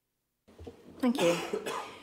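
An older man speaks calmly through a microphone in a large room.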